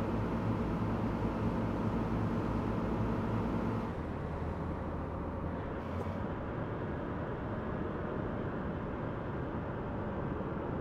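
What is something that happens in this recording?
A truck engine hums steadily while driving, with a low rumble that drops in pitch a few seconds in.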